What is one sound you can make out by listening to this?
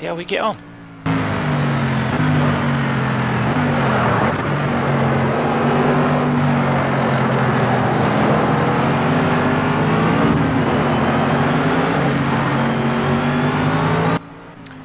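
A racing car engine roars at high speed, its pitch rising and falling with gear changes.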